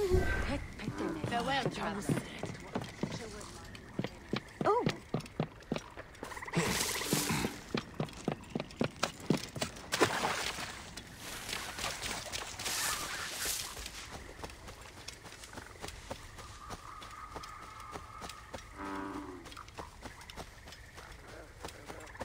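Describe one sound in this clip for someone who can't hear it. Footsteps thud steadily on wooden boards and ground.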